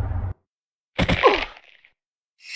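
A body lands with a heavy thud.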